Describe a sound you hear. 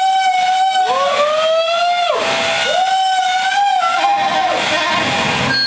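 A clarinet plays long, sliding notes.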